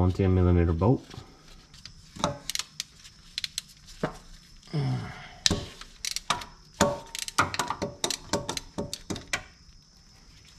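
Metal tools clink and knock against engine parts.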